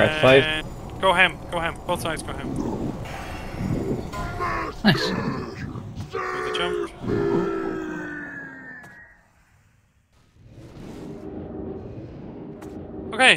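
Lightning spells crackle and zap in quick bursts.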